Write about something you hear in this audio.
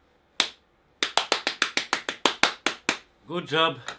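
A man claps his hands quickly.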